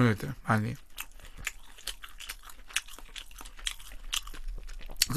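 A young man chews food loudly with wet, crunchy clicks close to a microphone.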